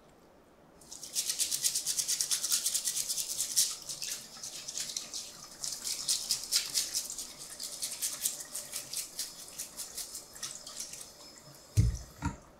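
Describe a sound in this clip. Running water splashes from a tap.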